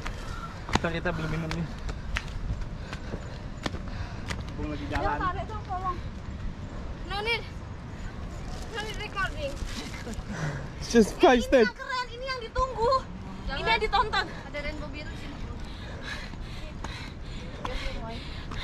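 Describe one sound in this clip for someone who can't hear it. Footsteps crunch on a rocky path.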